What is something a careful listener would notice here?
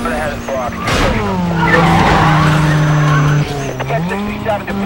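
Car tyres screech while skidding through a turn.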